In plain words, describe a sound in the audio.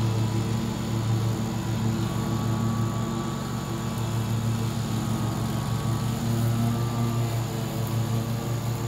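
A riding lawn mower engine drones steadily nearby.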